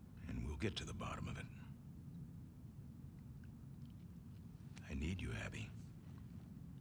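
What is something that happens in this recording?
An older man speaks quietly and warmly, close by.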